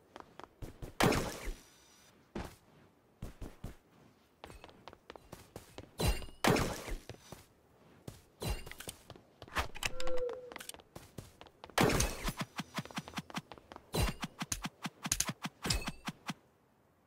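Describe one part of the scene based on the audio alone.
A sword swings and hits with sharp whooshes and thuds.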